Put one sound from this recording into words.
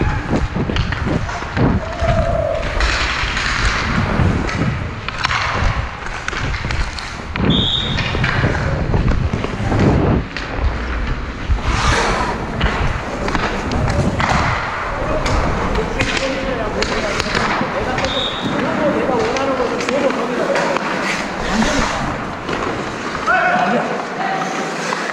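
Ice skates scrape and hiss across ice close by.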